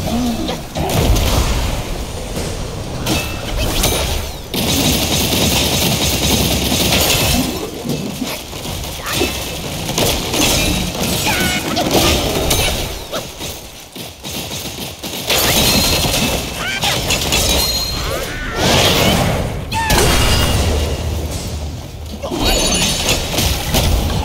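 A huge stone creature crashes and rumbles as it slams the ground.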